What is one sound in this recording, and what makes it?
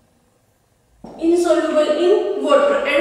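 A woman speaks clearly into a nearby microphone, explaining calmly.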